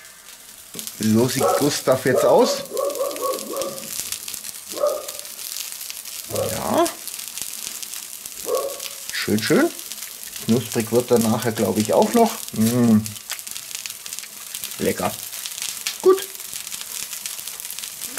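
Fat sizzles and crackles over hot coals.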